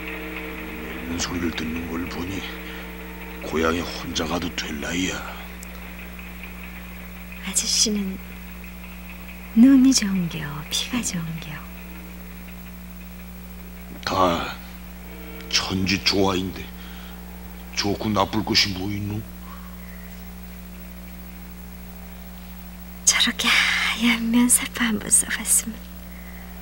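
A woman speaks anxiously, close by.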